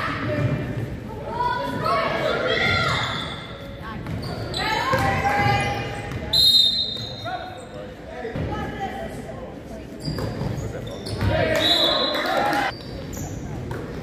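Sneakers squeak sharply on a wooden court floor.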